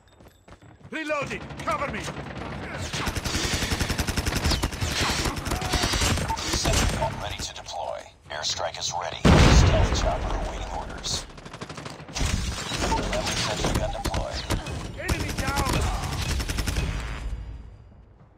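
Rifle shots crack out in rapid bursts.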